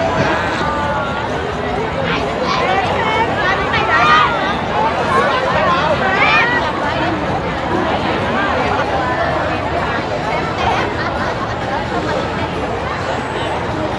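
A fountain splashes steadily.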